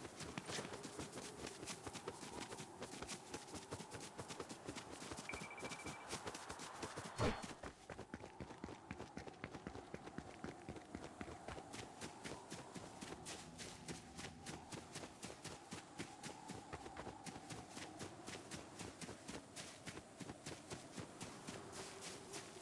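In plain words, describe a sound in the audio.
Quick footsteps patter steadily over grass and hard ground.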